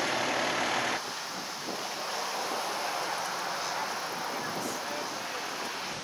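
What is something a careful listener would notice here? A brush fire crackles and burns.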